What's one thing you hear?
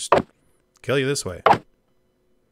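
A sword strikes a creature with a sharp hit.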